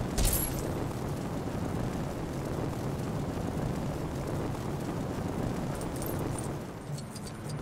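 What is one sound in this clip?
Flames roar and rush steadily.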